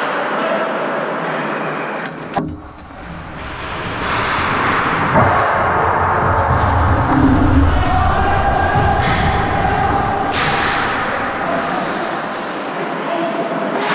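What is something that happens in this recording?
Skates scrape and carve across ice in a large echoing arena.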